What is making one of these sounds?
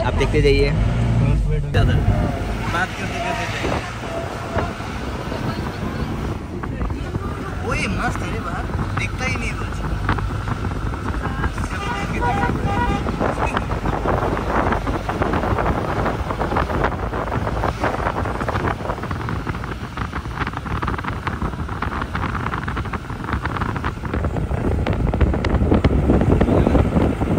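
A vehicle's engine rumbles steadily as it drives along a road.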